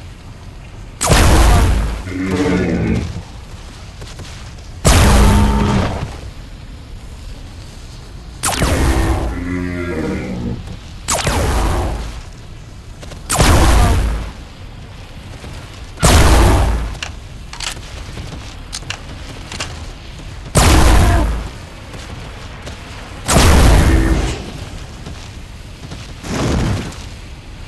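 Loud gunshots boom one at a time, each followed by a rumbling echo.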